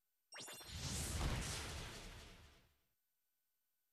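A game attack bursts with a loud blast.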